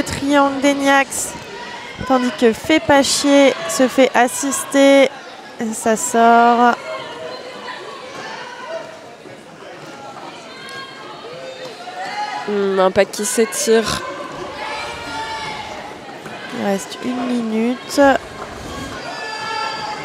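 Skaters shout and call out loudly in a large echoing hall.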